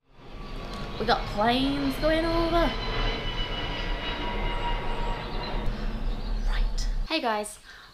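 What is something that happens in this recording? A young woman speaks close by with an expressive, sing-song voice.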